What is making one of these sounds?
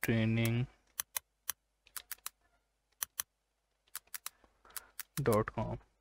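Keys on a keyboard click in quick taps.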